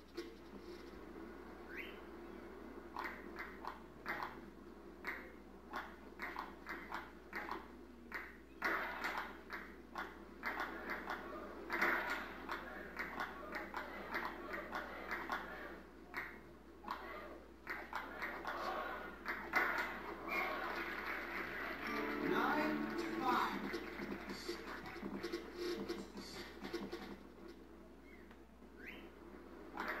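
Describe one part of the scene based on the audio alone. A ping-pong ball clicks back and forth on paddles and a table in a quick rhythm.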